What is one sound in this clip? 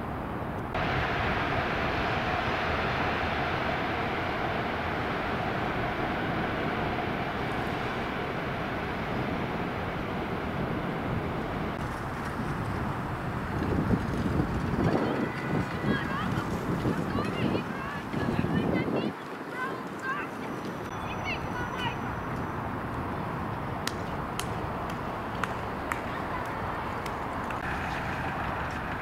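Wind blows outdoors, gusting in places.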